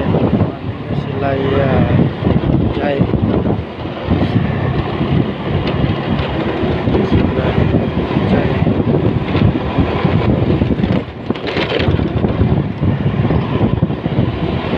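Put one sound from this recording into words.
A motorcycle engine hums steadily while riding along a road.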